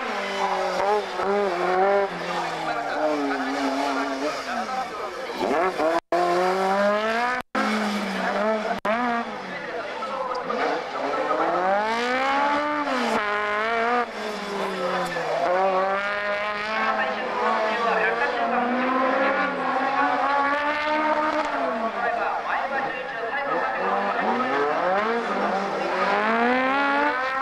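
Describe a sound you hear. A car engine revs hard, rising and falling as the car drifts around a track.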